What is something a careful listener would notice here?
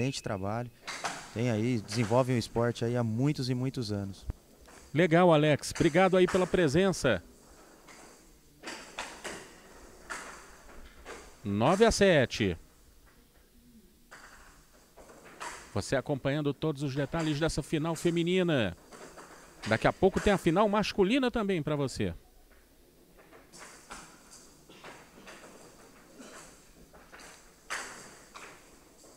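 Wooden paddles knock sharply against a ball.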